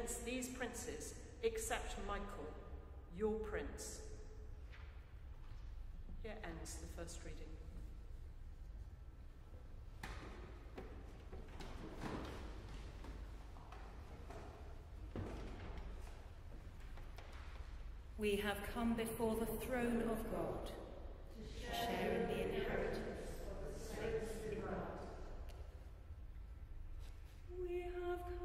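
A middle-aged woman reads aloud calmly through a microphone in a large echoing hall.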